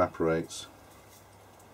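An aerosol spray hisses in a short burst.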